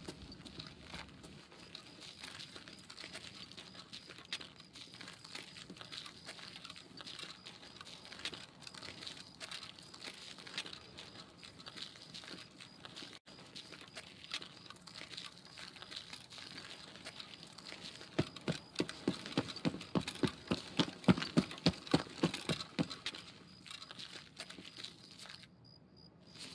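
Footsteps crunch steadily on gravel and grass.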